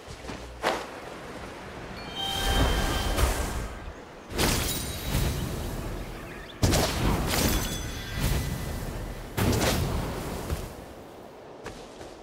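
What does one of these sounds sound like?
Wind rushes and whooshes as a game character glides through the air.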